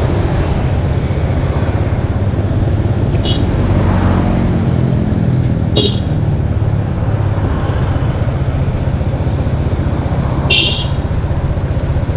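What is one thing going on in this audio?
A motorbike engine hums steadily up close as it rides along a street.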